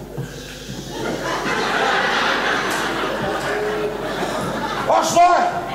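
An audience laughs and cheers in a large hall.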